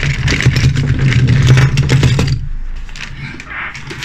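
Small metal toy cars clatter as they're tipped out onto a table.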